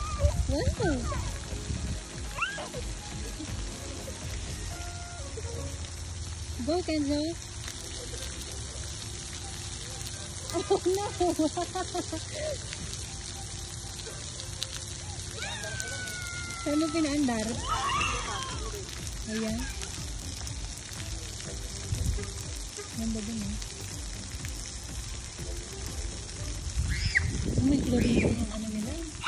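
Water sprays and hisses steadily from fountains outdoors.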